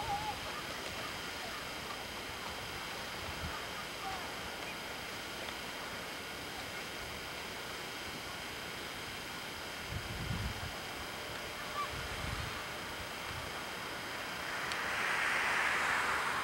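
Boots crunch in snow.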